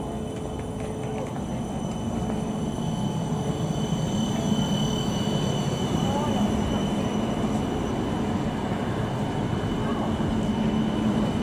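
A tram rolls past close by with a low rumble and a steady high whine.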